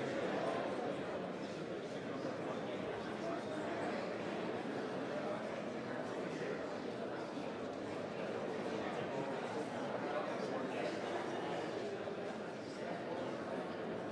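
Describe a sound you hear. A crowd of men and women murmur and chat at once, echoing in a large hall.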